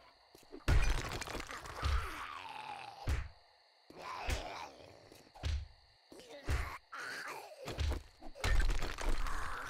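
A heavy club smashes through stone blocks with loud crunching impacts.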